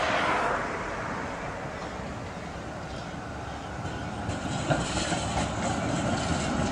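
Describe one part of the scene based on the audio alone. A tram rumbles past close by on its rails.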